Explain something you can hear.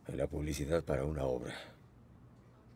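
A middle-aged man speaks earnestly nearby.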